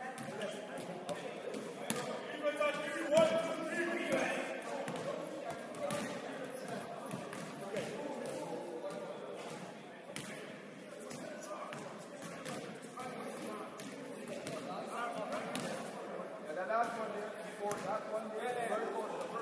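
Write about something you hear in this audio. Young men and onlookers chatter and call out in a large echoing hall.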